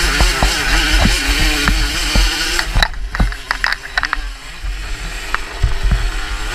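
A dirt bike engine revs loudly and close by.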